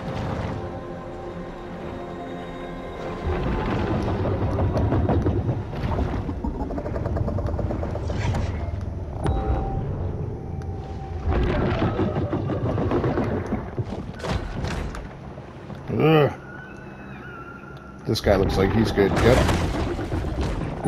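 A large creature swims with a low underwater rumble.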